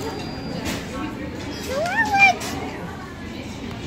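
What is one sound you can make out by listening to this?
A young boy sucks on a drinking straw.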